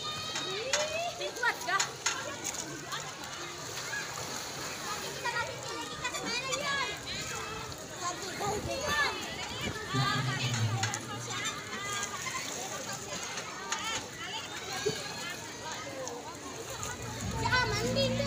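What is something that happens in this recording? Water splashes as swimmers move about.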